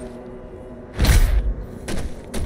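A heavy thud sounds.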